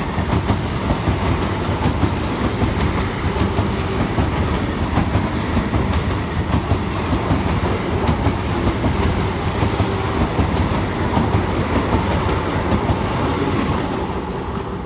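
A train rumbles and clatters past close by on the tracks.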